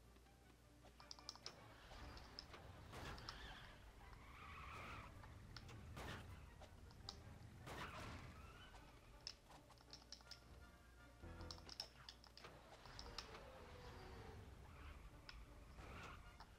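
Small plastic pieces clatter and break apart with quick clicks.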